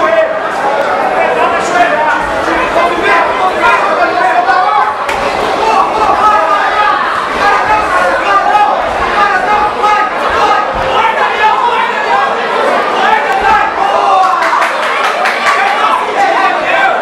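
A crowd shouts and cheers loudly throughout.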